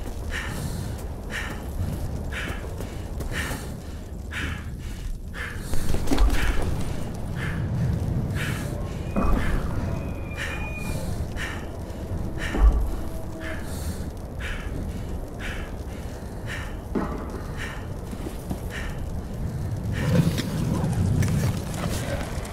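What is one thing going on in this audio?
Footsteps splash steadily through mud and puddles.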